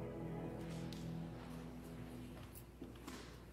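Instruments play a soft held chord that fades.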